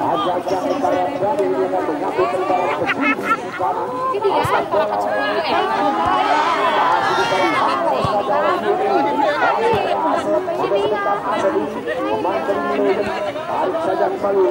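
A crowd of nearby spectators, men and women, chatter and shout loudly outdoors.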